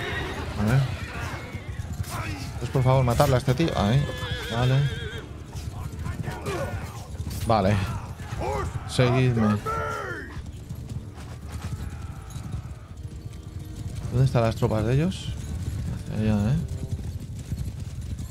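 Horses' hooves thud on grass.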